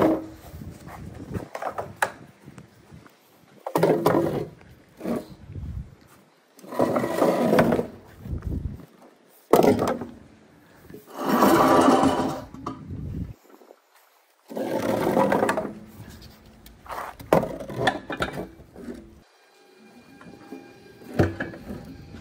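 A woven chair creaks and scrapes as a hand moves it.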